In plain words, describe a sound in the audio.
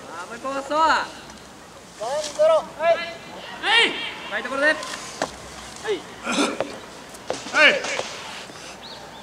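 Young players shout loudly in high voices outdoors.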